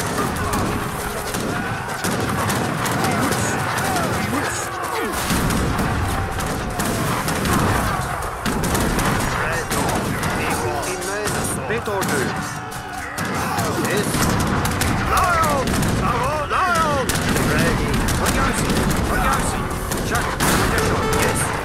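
Soldiers clash in a battle.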